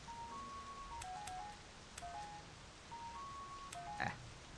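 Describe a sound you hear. A slot machine button clicks.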